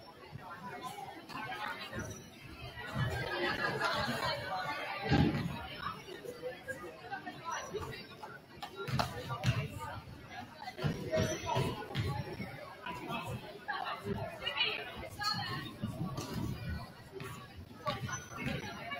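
Basketballs bounce on a hardwood floor, echoing in a large hall.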